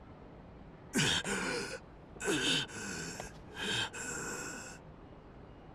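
A man groans weakly in pain, close by.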